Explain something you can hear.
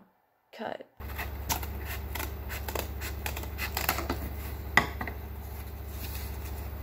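Cardboard rustles and scrapes as it is handled.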